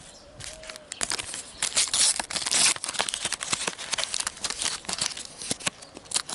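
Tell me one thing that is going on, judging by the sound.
A foil sticker packet crinkles and tears as it is opened.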